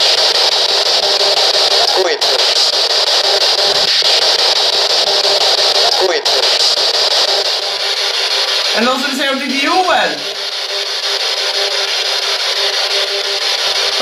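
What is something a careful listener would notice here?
A radio scanner hisses with steady, rapidly sweeping static.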